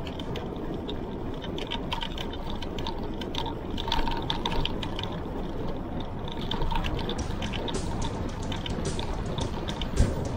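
Wind rushes steadily past a bicycle rider.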